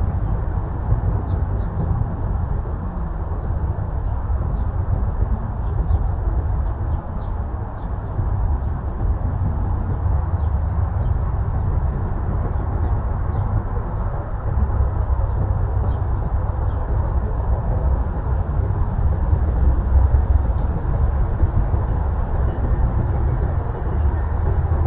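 Wind gusts steadily outdoors, rumbling against the microphone.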